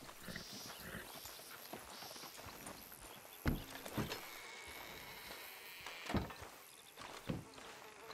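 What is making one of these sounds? Footsteps crunch on dirt.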